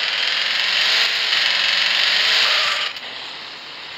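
Tyres screech on pavement.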